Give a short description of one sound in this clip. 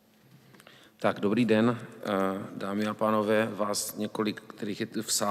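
A man speaks steadily into a microphone in an echoing hall.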